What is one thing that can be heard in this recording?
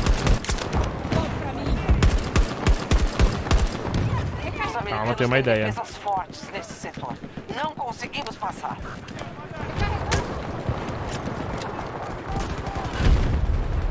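Gunfire from a game rattles in rapid bursts.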